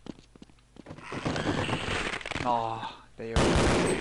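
Small creatures screech and hiss close by.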